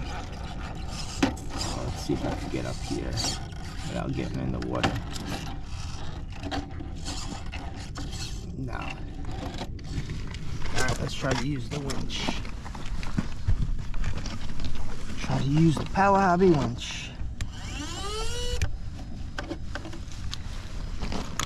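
Rubber tyres scrape and grind on rock.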